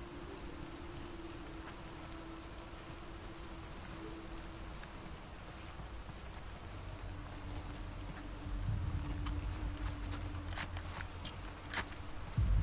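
Footsteps tread slowly on the ground.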